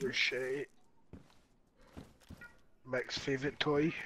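Boots thud on a wooden floor.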